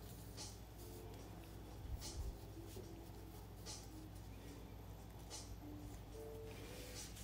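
Fingers softly rustle a skein of thread.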